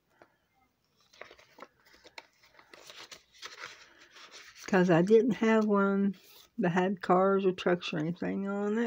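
Plastic binder sleeves crinkle as they are turned.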